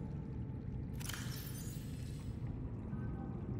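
A device opens with a bright whooshing rush.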